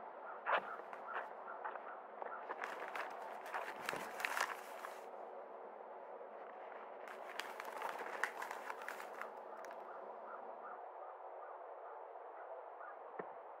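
A newspaper's pages rustle and crinkle as they are turned.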